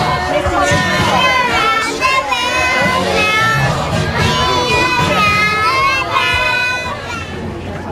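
Young children laugh and shout excitedly close by.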